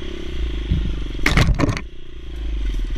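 Branches and leaves brush and snap against a dirt bike.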